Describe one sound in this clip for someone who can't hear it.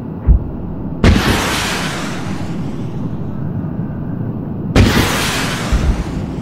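Large explosions boom and rumble.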